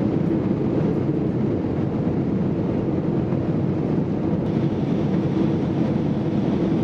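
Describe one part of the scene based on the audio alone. Jet engines roar steadily as an airliner climbs after takeoff.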